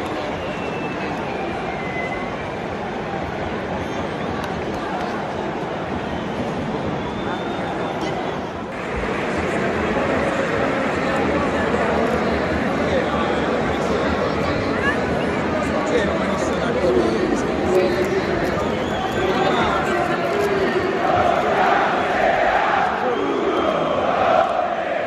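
A huge stadium crowd roars and chants loudly, echoing around the stands.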